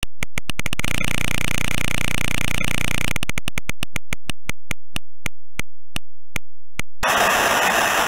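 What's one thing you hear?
A game wheel clicks rapidly as it spins, the clicks slowing down until it stops.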